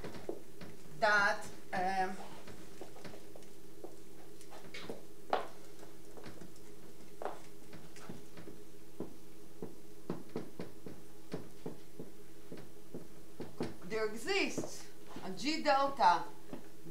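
A woman speaks calmly, as if lecturing.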